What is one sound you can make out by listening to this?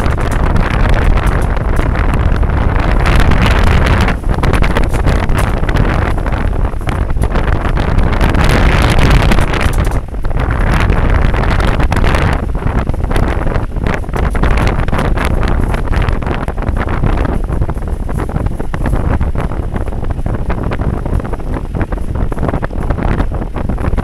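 A loose metal frame rattles with the bumps.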